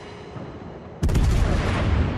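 Heavy naval guns fire with a loud booming roar.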